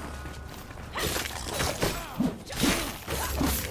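Sword blows clash and clang in a fight.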